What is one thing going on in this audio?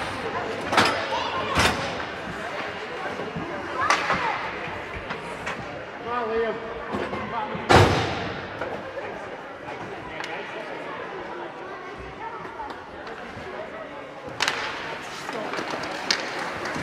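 Hockey sticks clack sharply in a large echoing rink.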